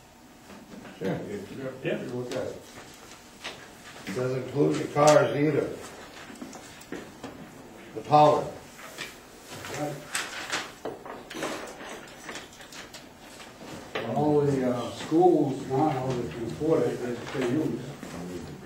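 Men speak calmly, heard from a distance in a room.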